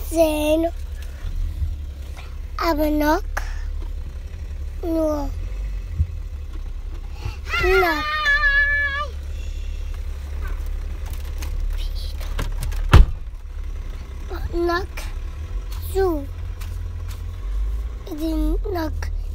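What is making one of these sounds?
A young child talks and sings close by in a high voice.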